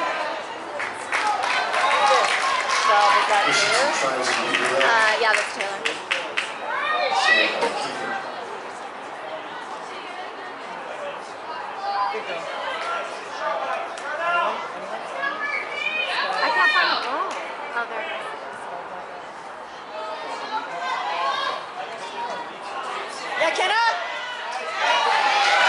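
Spectators nearby cheer and talk loudly.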